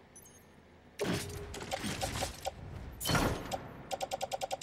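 Cargo thuds and rattles as a pack is loaded.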